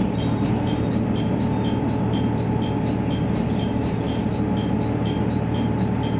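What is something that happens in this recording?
A train rumbles steadily along the rails, heard from inside a carriage.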